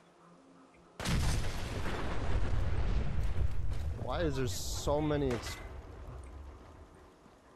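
A loud explosion booms and rumbles slowly away.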